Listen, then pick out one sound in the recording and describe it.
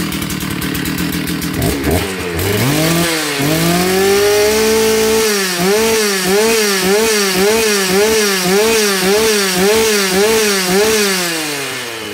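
A chainsaw engine idles roughly, then revs up and down over and over close by.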